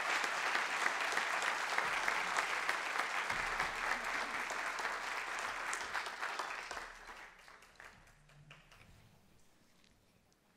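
An audience applauds in a large room, and the applause slowly fades away.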